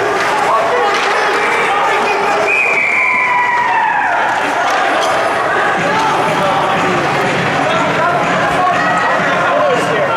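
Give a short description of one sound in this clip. A crowd of spectators chatters and calls out nearby in an echoing rink.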